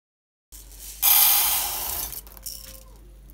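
Dry rice pours into a metal pot with a rushing hiss.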